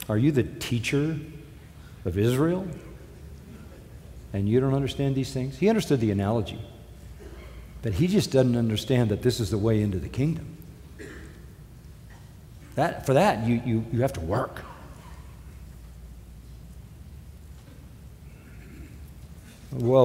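An elderly man speaks slowly and earnestly through a microphone, with long pauses.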